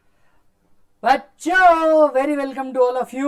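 A man speaks clearly and with animation close to a microphone.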